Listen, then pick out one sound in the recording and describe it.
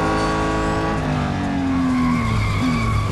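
A car engine slows down and its pitch falls while braking.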